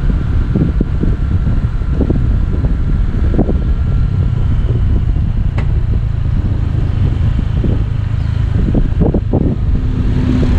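A scooter engine hums steadily.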